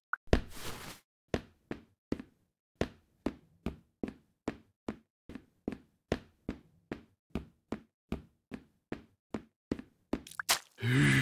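Footsteps climb wooden stairs at a steady pace.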